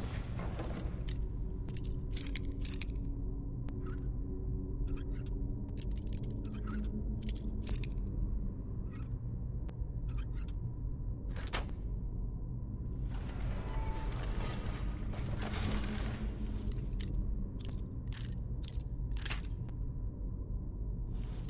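A lock pick scrapes and clicks inside a metal lock.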